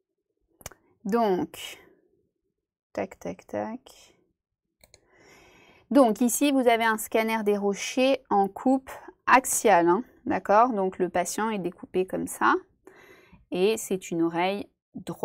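A young woman speaks calmly and clearly into a microphone, as if on an online call.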